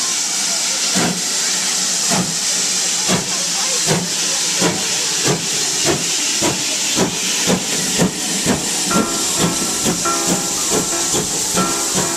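A steam locomotive chuffs in a steady, quickening rhythm.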